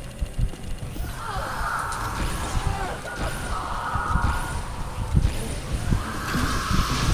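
An electronic meter crackles and whines.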